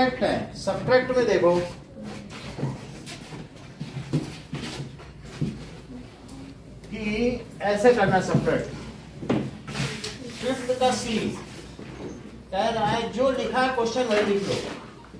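A man talks steadily.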